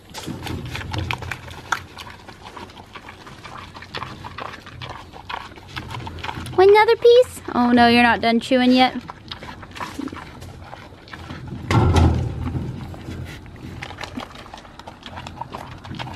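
A pig chews food noisily, close by.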